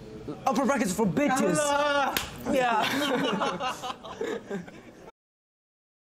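A group of young men laugh together.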